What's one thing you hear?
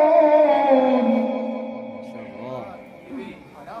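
A man chants in a long, drawn-out voice through a microphone, with a hall echo.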